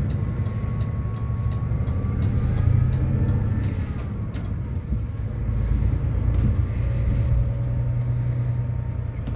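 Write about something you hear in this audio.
A bus engine hums low and steady from inside the cabin.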